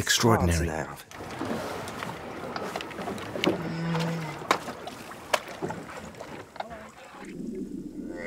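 Waves slosh against a boat outdoors in wind.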